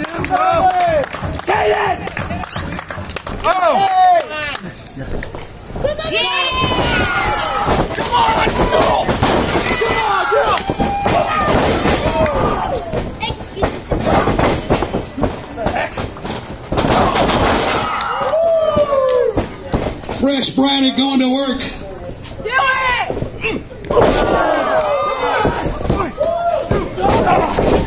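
A crowd of adults shouts and cheers outdoors.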